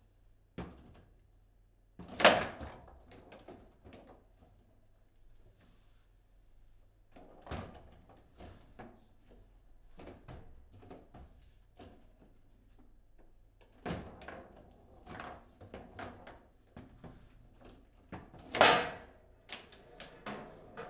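Foosball rods slide and rattle with quick clatter.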